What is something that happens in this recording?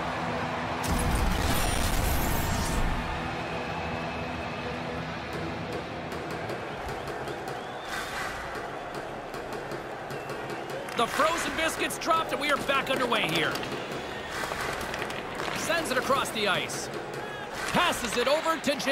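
Skates scrape and click on ice.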